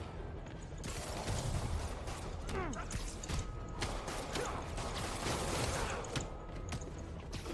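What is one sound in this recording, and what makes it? Punches and thuds land in a brawl.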